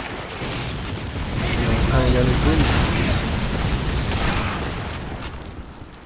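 A submachine gun fires single loud shots.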